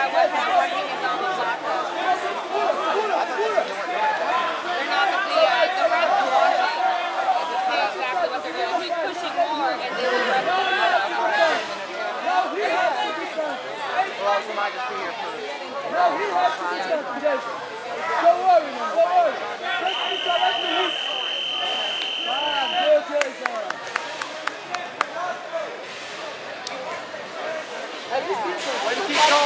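A crowd of men and women shouts and cheers throughout a large echoing hall.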